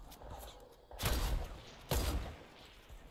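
A rifle fires loud, sharp shots.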